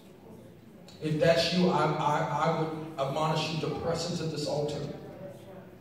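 A man prays loudly and fervently through a microphone and loudspeaker, in an echoing hall.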